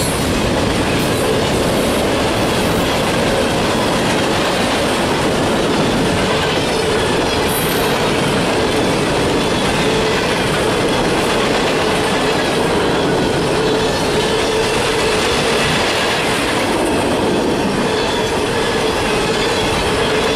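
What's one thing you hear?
A long freight train rumbles past close by, wheels clattering and squealing on the rails.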